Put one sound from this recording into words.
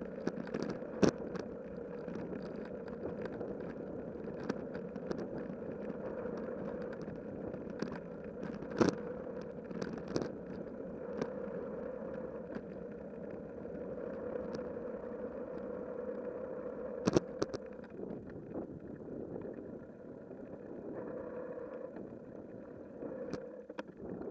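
A bicycle rattles and knocks sharply over bumps in the path.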